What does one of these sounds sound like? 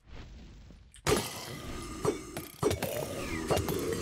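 Sharp hits and clatter of a fight ring out.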